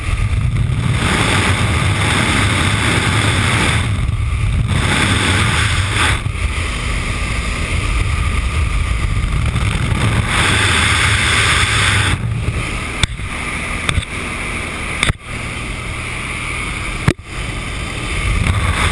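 Wind roars loudly past an open aircraft door.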